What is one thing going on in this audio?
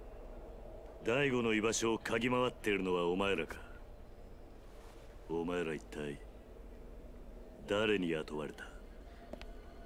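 A man speaks in a low, stern voice.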